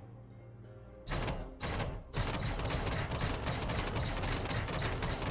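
A deep magical blast rumbles and crackles.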